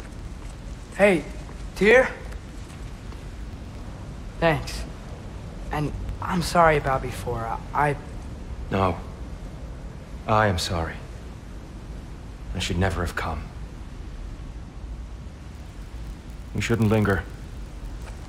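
A man speaks in a deep, calm voice, in short phrases with pauses.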